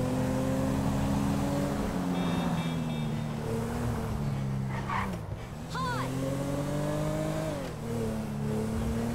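A car engine hums and revs, rising and falling as the car speeds up and shifts gears.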